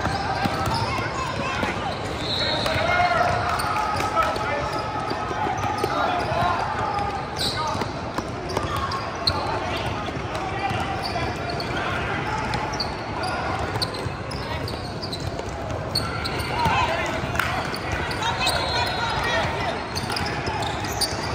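Young players shout and call out to each other across the court.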